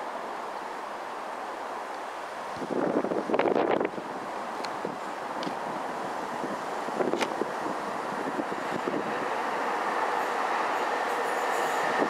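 A tram approaches on rails with a low rumble that slowly grows louder.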